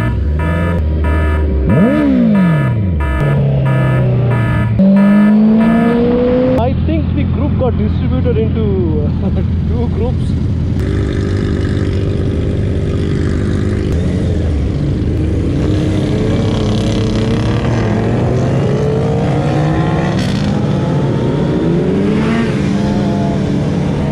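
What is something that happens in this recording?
Sportbike engines rev as a group of motorcycles rides past.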